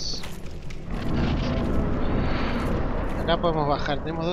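A soft rushing whoosh swells and fades.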